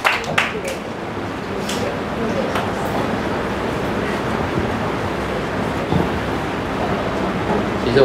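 A young man speaks calmly to an audience.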